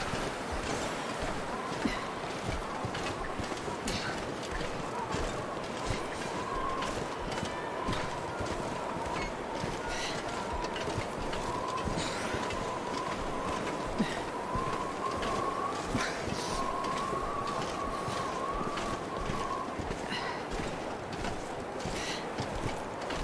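Wind blows steadily across open snow.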